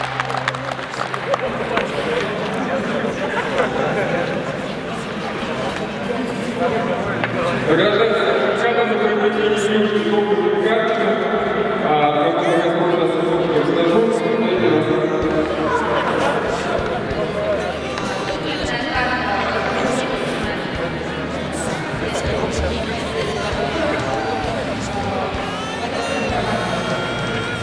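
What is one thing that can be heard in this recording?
A man speaks into a microphone with animation, his voice carried over loudspeakers in a large echoing arena.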